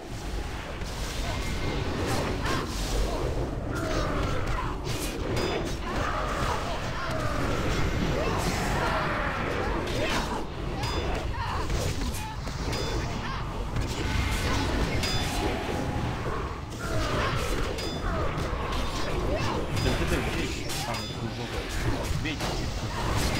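Spells crackle and clash in a battle.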